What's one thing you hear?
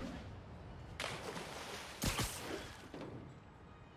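Something splashes heavily into water.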